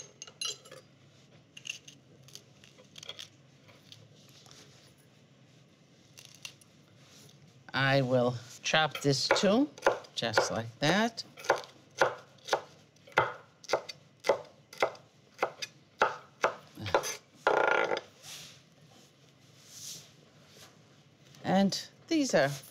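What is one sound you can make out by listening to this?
A knife chops on a wooden board with quick taps.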